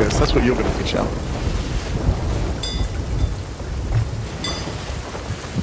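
Ocean waves wash and splash against a wooden boat.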